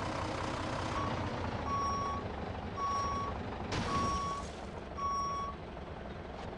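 A reversing alarm beeps in short, even pulses.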